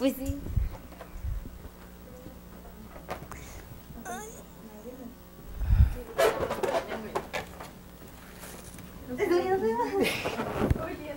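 Young women laugh and talk playfully nearby.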